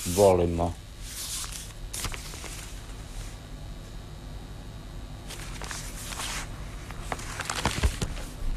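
Newspaper pages rustle as they are folded and turned.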